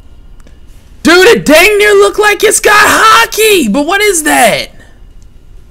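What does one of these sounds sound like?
A young man speaks loudly with animation, close to a microphone.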